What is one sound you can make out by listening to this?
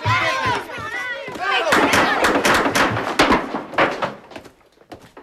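Boys shout and clamour in a scuffle.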